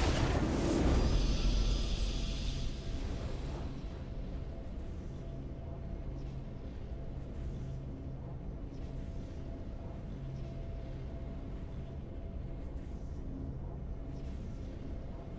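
Triumphant game music plays.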